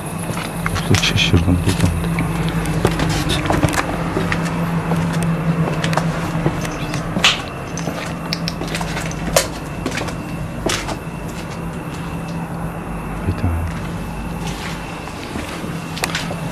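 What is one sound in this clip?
Footsteps tread on stone steps and hard ground.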